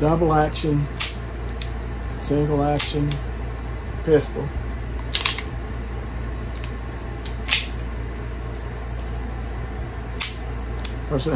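A pistol's metal parts click and clack as a hand works them.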